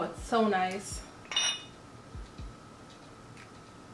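A glass stopper clinks against a glass bottle.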